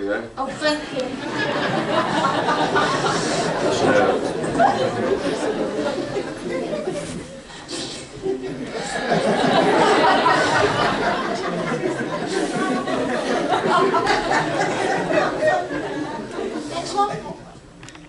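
An audience laughs and cheers loudly.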